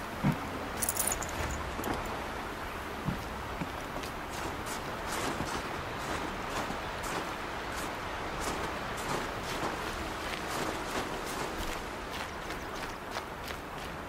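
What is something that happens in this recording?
Footsteps crunch through snow and brush at a steady pace.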